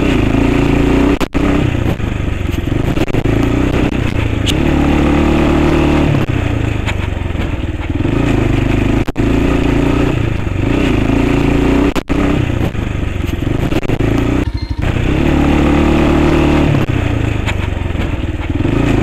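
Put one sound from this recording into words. A motorcycle engine hums and revs up and down steadily close by.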